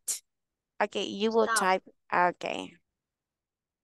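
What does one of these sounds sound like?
A young woman speaks briefly and calmly over an online call.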